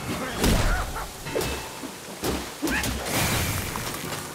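Water splashes under heavy footsteps.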